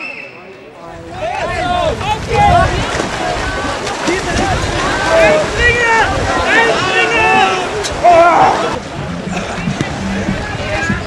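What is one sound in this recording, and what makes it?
Paddles splash and churn through water.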